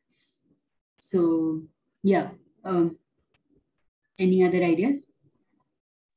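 A woman speaks calmly over an online call, in short phrases.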